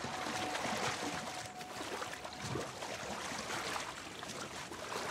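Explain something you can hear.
A man wades and splashes through deep water.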